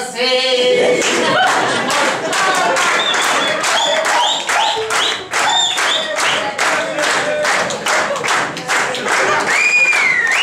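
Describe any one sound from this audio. A crowd claps along in a quick steady rhythm.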